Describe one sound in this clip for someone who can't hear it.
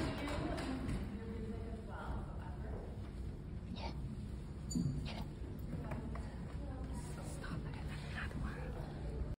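A woman speaks through a loudspeaker in a large hall.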